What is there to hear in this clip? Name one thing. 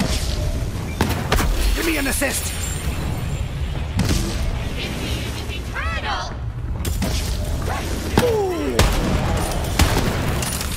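Rifle shots crack sharply, one at a time.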